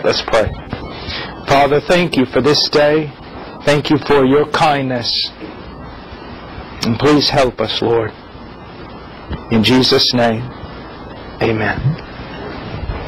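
A man speaks calmly and closely into a microphone, in short phrases with pauses.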